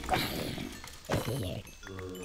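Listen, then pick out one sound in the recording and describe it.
A sword strikes a creature with a sharp thud.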